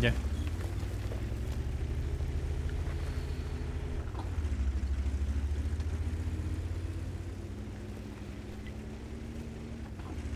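A tank engine rumbles deeply and steadily.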